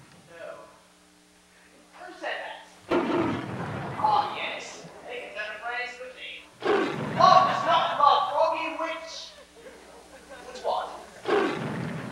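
A man answers in a playful character voice on a stage.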